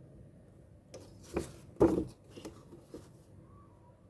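Paper rustles and crinkles as a sheet is handled.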